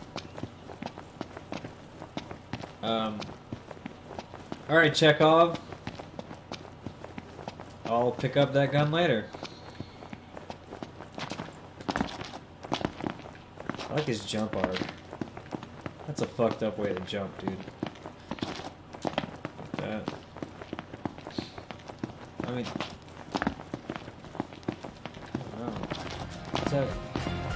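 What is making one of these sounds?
Footsteps patter quickly over dirt and pavement.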